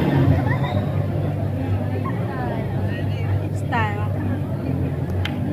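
A crowd of young people chatters loudly in a large echoing hall.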